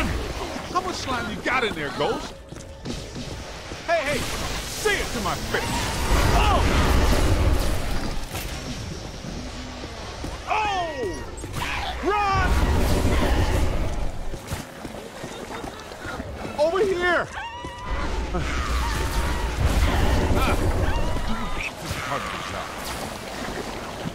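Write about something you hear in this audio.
Slime sprays with a wet gush.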